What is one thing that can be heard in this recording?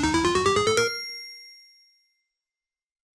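A bright electronic jingle climbs in quick steps, then rings out and fades.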